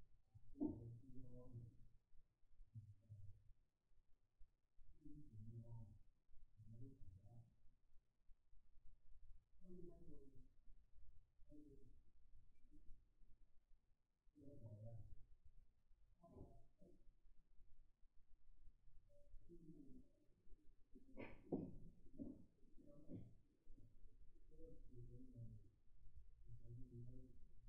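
A woman lectures calmly through a microphone, with short pauses.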